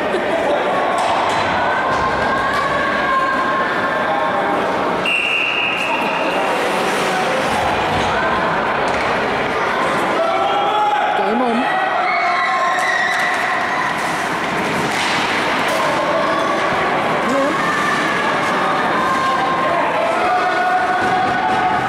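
Spectators chatter and call out in an echoing rink.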